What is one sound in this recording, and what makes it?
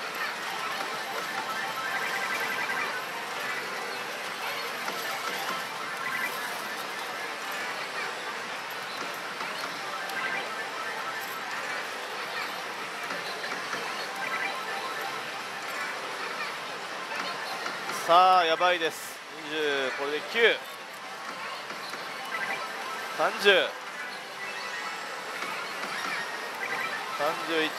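Slot machine reels spin and stop with clicks.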